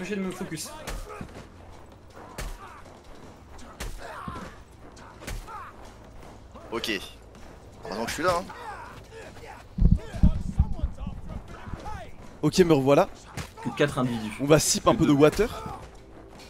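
Fists thud against bodies in a brawl.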